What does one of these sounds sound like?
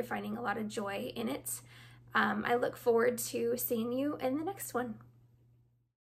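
A young woman speaks warmly and with animation close to a microphone.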